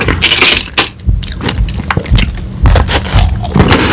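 A man crunches and chews food close to a microphone.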